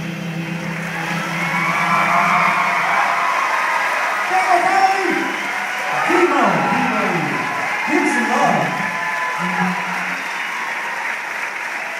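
A group of men sing together through loudspeakers in a large echoing hall.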